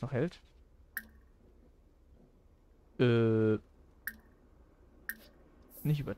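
A game menu gives short, soft clicks.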